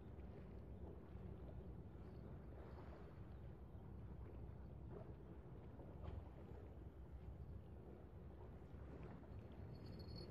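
Small waves lap against a stone pier.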